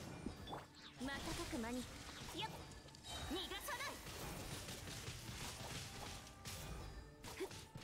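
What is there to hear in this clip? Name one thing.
Electric blasts crackle and zap during a fight.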